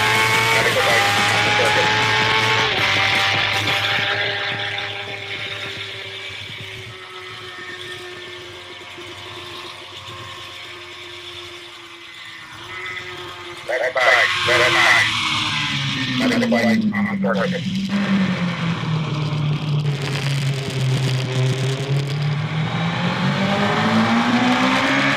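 A motorcycle engine roars at speed, its pitch rising and falling through the gears.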